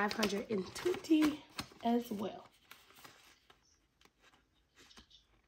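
A paper envelope rustles softly as it is handled.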